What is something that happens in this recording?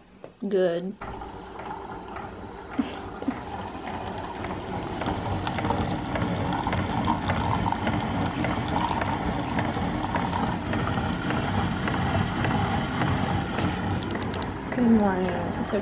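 A coffee maker hums steadily as coffee streams into a mug.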